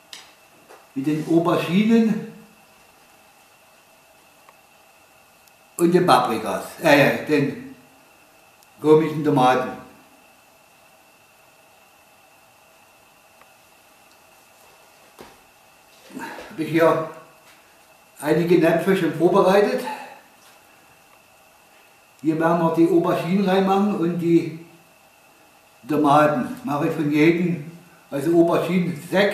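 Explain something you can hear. An elderly man talks calmly in bursts, close by.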